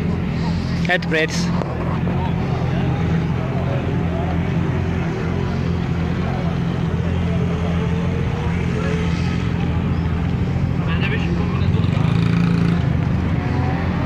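Men and women talk in the background outdoors.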